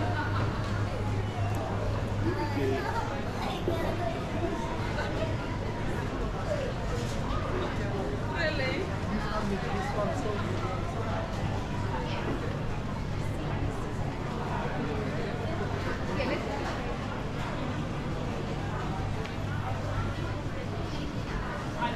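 Footsteps walk along a hard floor.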